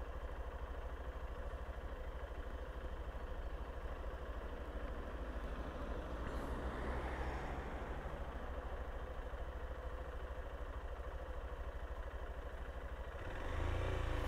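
A motorcycle engine idles with a low, steady rumble.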